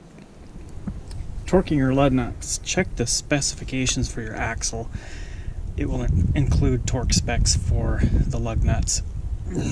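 A torque wrench clicks on a wheel nut.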